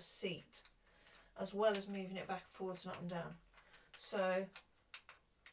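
A woman speaks casually nearby.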